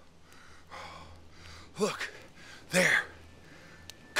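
A young man speaks tensely nearby.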